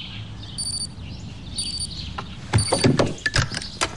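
An alarm clock beeps in short, high bursts.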